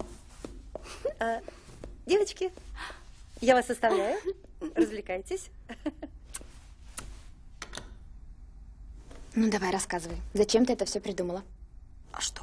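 A young woman speaks nearby with animation.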